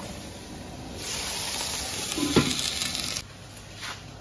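Vegetables sizzle loudly in a hot wok.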